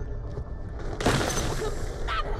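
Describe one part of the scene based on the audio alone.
An explosion bursts with a loud crash.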